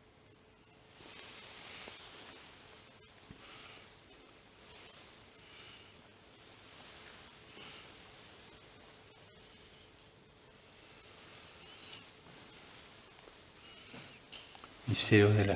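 An elderly man murmurs a prayer quietly, heard through a microphone in a small room.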